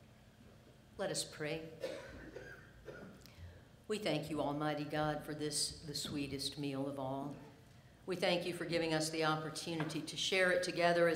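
A middle-aged woman speaks calmly into a microphone in a large echoing hall.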